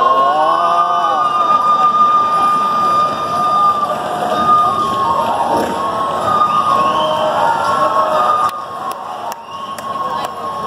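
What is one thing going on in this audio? Festive music plays loudly through outdoor loudspeakers.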